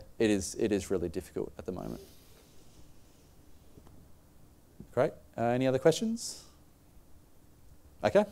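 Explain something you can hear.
A young man speaks calmly through a microphone in a large room, with pauses.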